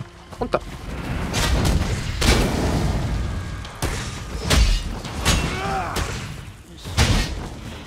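Fire bursts with a roaring whoosh.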